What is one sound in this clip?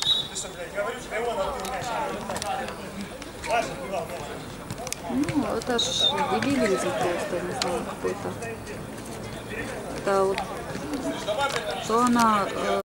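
Men shout and call to each other across an open outdoor pitch.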